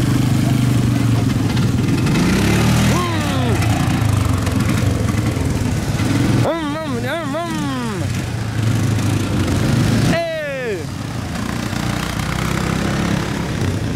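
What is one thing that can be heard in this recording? A quad bike engine revs and passes nearby.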